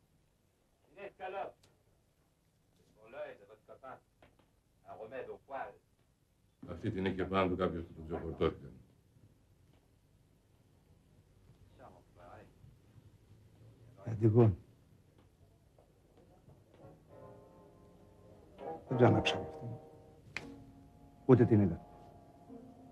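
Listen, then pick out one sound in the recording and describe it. A middle-aged man speaks in a low, calm voice.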